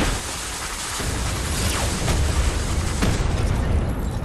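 An explosion booms and rumbles loudly.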